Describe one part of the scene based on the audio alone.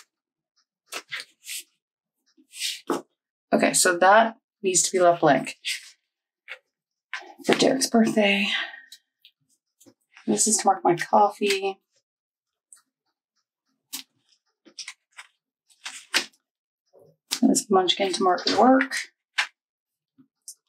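Paper rustles softly as stickers are peeled and pressed down.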